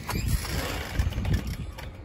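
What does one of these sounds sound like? A young boy laughs.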